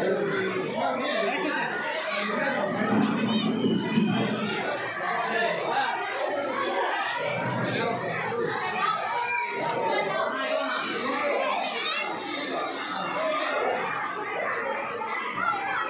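A group of men and women talk over one another nearby.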